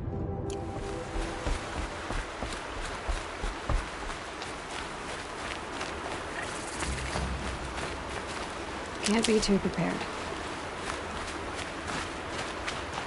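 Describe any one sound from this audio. Footsteps crunch quickly through snow and gravel.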